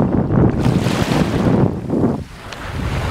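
A small wave breaks and washes up onto the shore.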